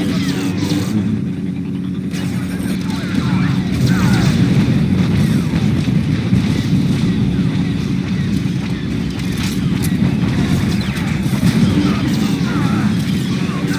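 Blaster shots zap in quick bursts.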